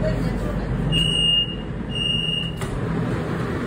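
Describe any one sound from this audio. A door warning beeps twice in short high tones.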